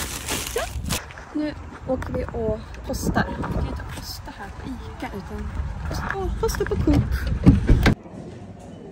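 A young woman talks with animation close by, outdoors in wind.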